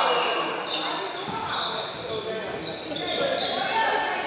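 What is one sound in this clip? A basketball bounces on a hardwood floor.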